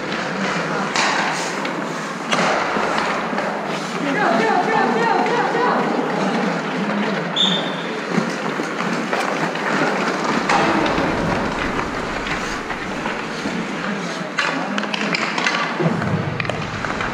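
Hockey sticks clack against the ice and a puck.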